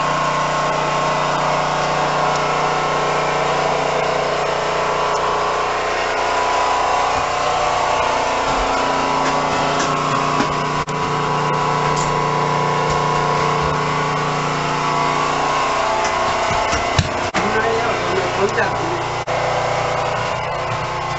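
A train's engine idles with a steady low hum throughout.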